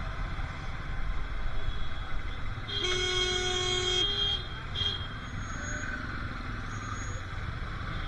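Motorcycle engines idle and rumble close by in traffic.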